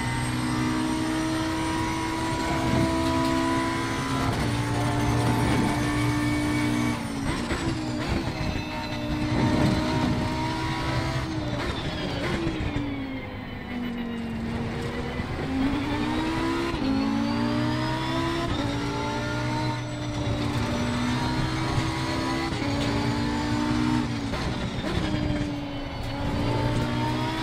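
Tyres rumble over the track.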